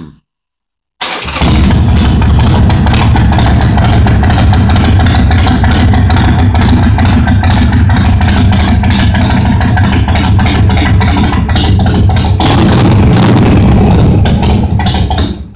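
A motorcycle engine idles loudly with a deep, throbbing rumble.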